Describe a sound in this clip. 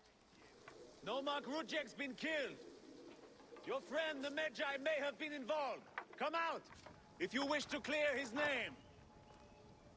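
A man calls out loudly and urgently.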